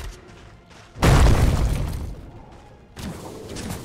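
A wall of ice bursts up with a loud crackling crash.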